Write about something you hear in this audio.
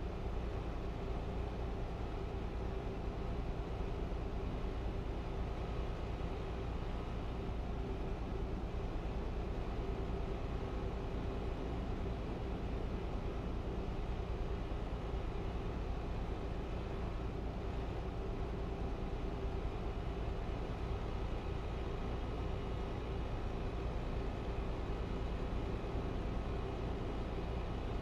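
A truck engine hums steadily at cruising speed.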